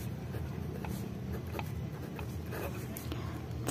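A pen scratches across paper.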